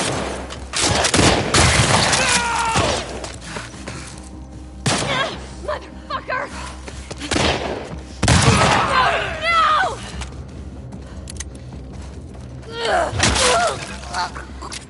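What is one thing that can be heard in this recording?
A man grunts and cries out in pain.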